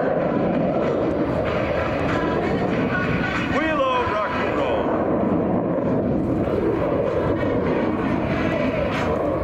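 A jet engine roars loudly overhead.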